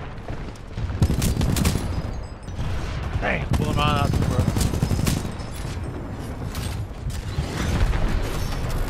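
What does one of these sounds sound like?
Rapid gunfire rattles loudly.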